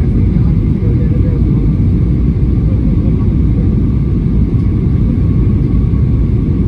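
Jet engines roar steadily inside an airliner cabin in flight.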